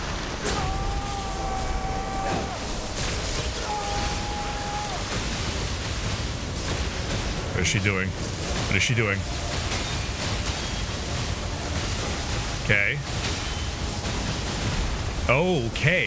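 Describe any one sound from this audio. A man talks into a microphone in a lively way.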